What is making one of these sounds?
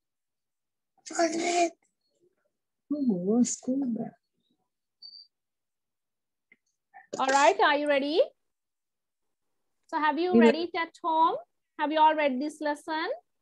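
A woman speaks slowly and clearly over an online call, in short phrases.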